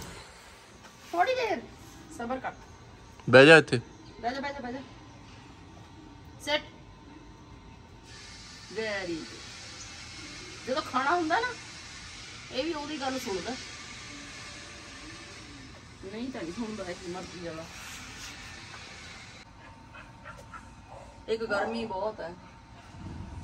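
A middle-aged woman talks calmly close by.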